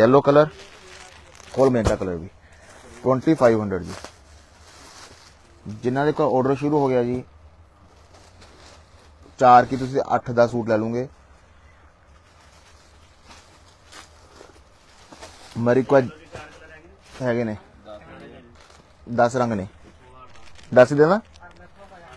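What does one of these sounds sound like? Cloth rustles as it is unfolded and laid out.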